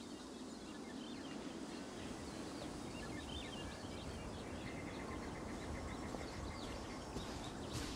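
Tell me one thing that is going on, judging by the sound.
A soft wind blows steadily through tall grass outdoors.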